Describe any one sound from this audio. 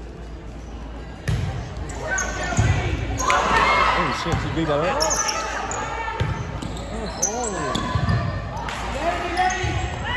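A volleyball thumps off players' arms.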